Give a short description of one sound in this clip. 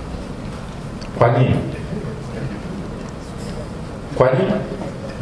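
A man speaks into a microphone in a large echoing room.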